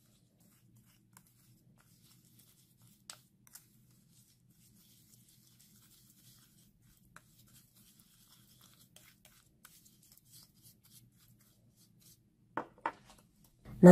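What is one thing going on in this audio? A spoon scrapes and clicks softly against a bowl while stirring.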